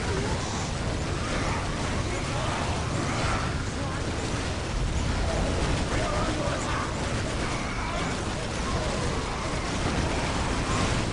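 Explosions boom in a battle.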